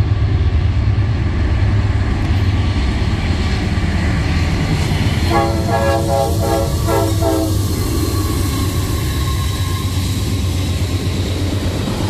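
A diesel locomotive rumbles closer and passes loudly.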